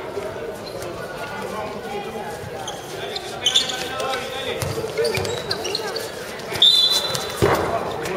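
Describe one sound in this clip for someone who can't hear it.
A ball bounces on hard ground.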